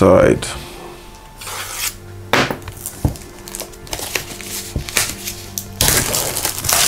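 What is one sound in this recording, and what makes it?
A knife blade scrapes and slits plastic wrap.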